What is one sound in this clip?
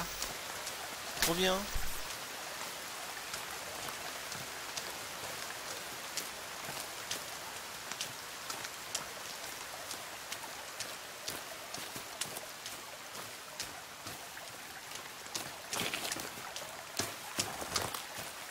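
Footsteps rustle through grass and undergrowth at a steady walking pace.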